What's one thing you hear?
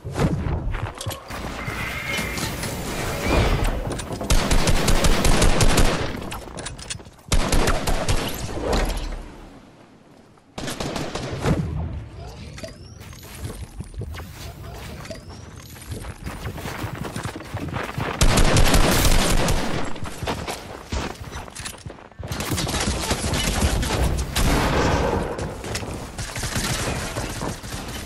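Wooden and stone panels clatter rapidly into place.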